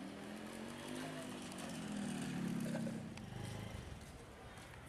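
A motorcycle engine runs nearby.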